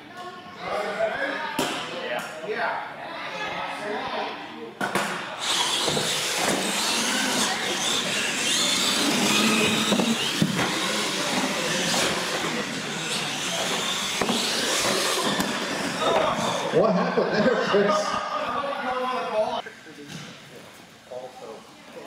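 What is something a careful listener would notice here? Small electric motors whine as toy cars race across a hard floor.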